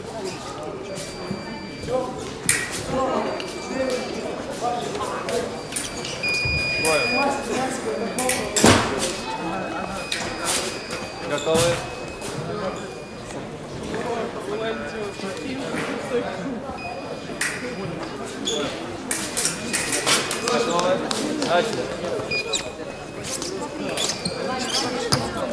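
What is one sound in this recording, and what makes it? An electronic scoring box beeps in short high tones.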